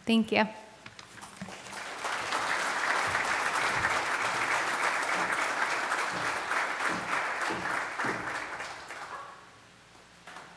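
A large audience applauds in a big echoing hall.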